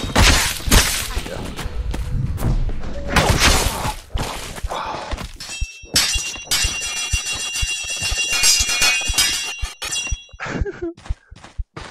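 Swords whoosh through the air in quick swings.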